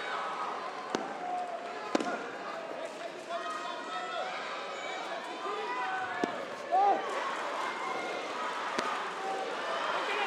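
Blows land with sharp slaps during a sparring clash.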